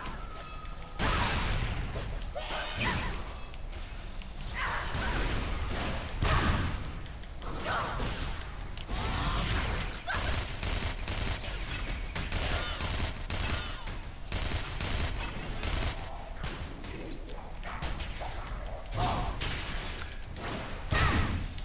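Swords clash and strike repeatedly.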